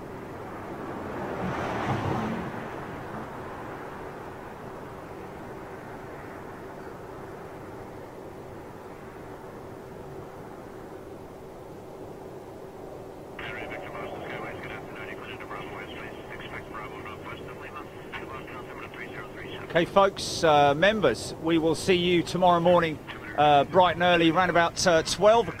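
A jet engine roars as a plane comes in low and then climbs away.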